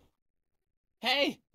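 A man briefly exclaims, close by.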